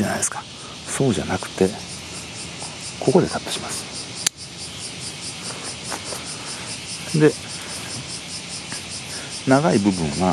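Leaves rustle as a hand pushes through a shrub.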